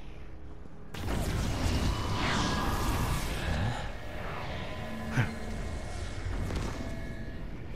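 A fiery explosion bursts with a deep roar and crackling flames.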